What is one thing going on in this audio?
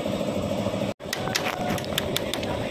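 A hammer taps on metal.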